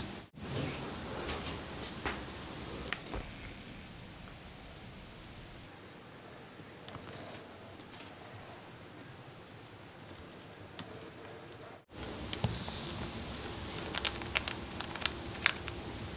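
A chipmunk nibbles and gnaws at food with soft, quick clicks.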